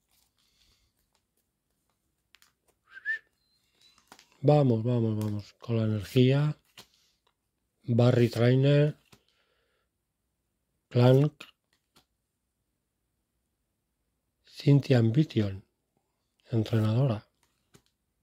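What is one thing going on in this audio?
Playing cards rustle softly as they are shuffled through by hand.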